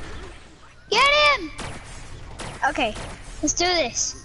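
A cartoonish weapon fires a crackling beam in bursts.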